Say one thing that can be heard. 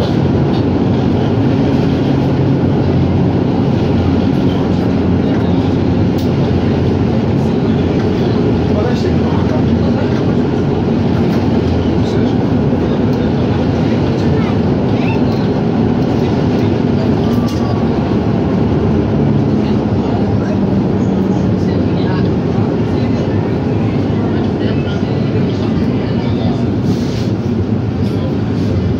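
A tram engine hums and drones loudly and steadily while riding.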